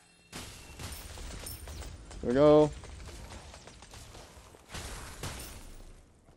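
Video game effects whoosh and clatter.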